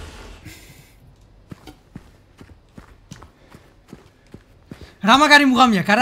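Footsteps thud slowly on a wooden floor.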